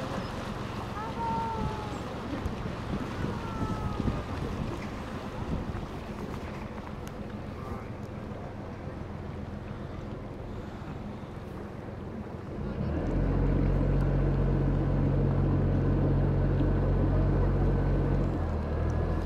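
A boat engine hums low and steadily, then grows louder.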